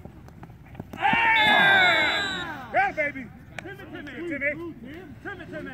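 Several men shout and cheer across an open field.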